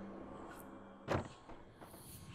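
A heavy wooden door opens with a dull thud.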